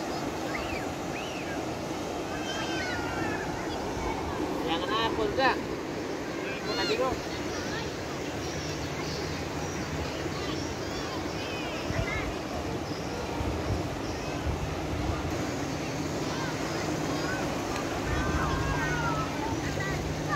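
A crowd of people chatters and calls out at a distance outdoors.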